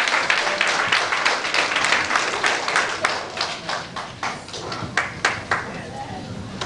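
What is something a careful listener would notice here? A crowd claps in a quick, steady rhythm in an echoing hall.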